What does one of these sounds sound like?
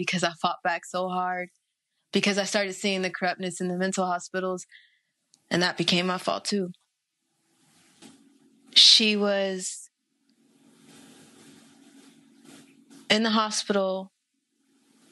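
A young woman speaks calmly and closely into a microphone.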